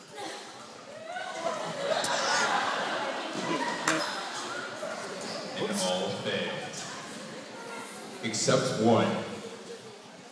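A crowd of children cheers and shouts.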